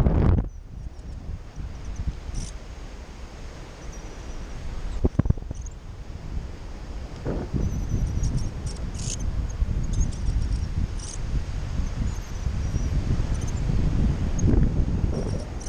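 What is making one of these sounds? Wind rushes and buffets loudly past a microphone.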